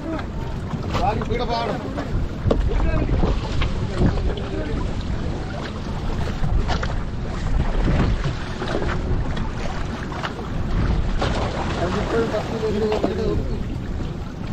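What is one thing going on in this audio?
Men talk to each other nearby.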